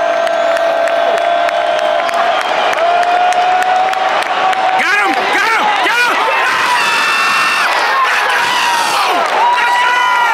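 A large stadium crowd cheers and roars loudly throughout.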